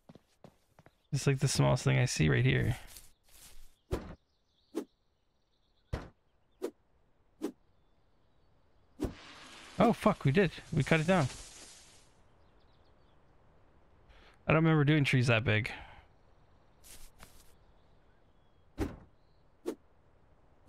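An axe chops into wood with sharp thuds.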